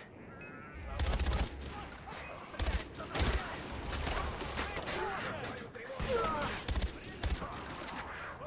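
Bursts of rifle fire crack loudly.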